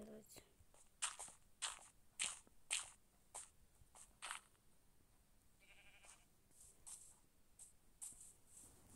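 Soft crunching thuds of earth being dug come in a quick series.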